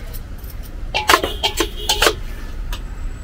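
A metal spoon scrapes and clinks against a steel bowl.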